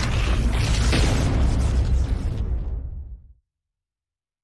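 Electric lightning crackles and booms loudly, then cuts off.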